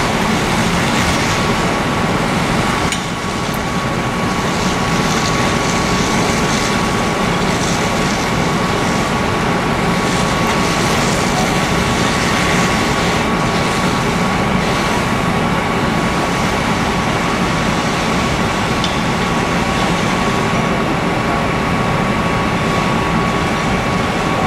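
A fire engine's pump drones steadily.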